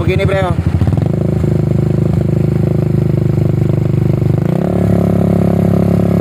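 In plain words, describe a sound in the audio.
A motorcycle engine revs up to a steady, higher roar.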